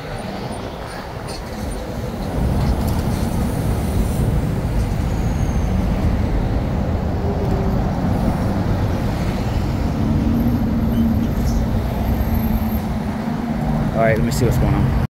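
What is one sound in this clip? Car and truck engines rumble steadily close by in slow heavy traffic.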